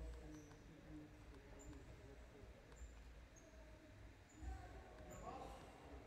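Sneakers squeak on a hard indoor court in a large echoing hall.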